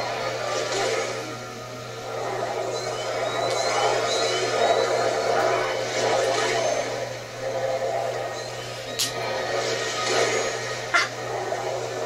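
A video game energy beam crackles and hums steadily.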